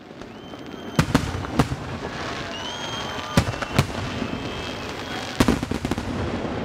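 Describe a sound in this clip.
Fireworks burst with loud, sharp booms.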